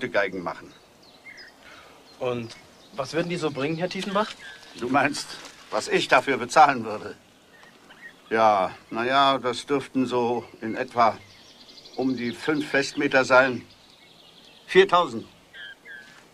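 A young man speaks and answers nearby.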